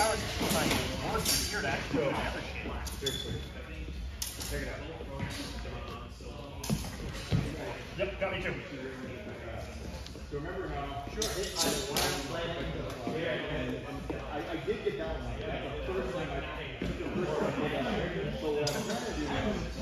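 A man talks through a fencing mask.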